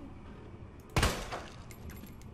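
A gunshot bangs loudly with a short echo.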